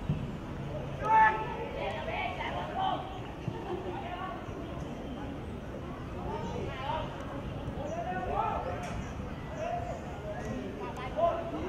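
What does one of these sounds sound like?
Young players shout to each other outdoors on an open field.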